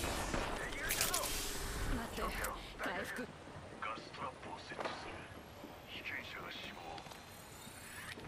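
A medical kit rustles and clicks as it is applied.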